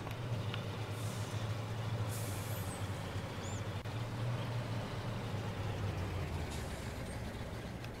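A combine harvester drones close by.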